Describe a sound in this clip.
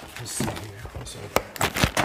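A hand rustles against a cardboard box.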